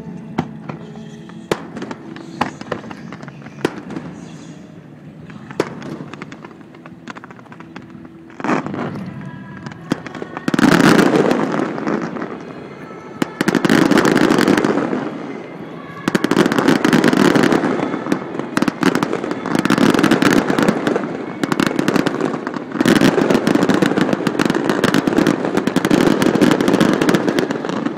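Fireworks bang and crackle sharply.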